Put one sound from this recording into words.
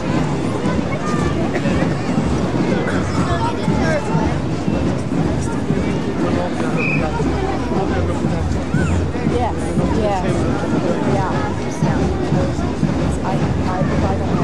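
A large outdoor crowd chatters and murmurs close by.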